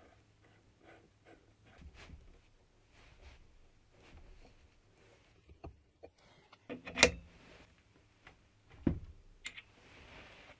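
Metal parts click and clink together under handling.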